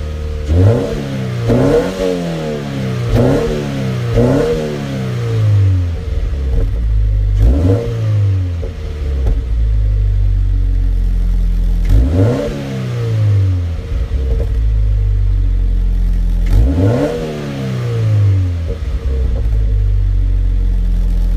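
A car engine revs sharply again and again, then idles with a steady low rumble.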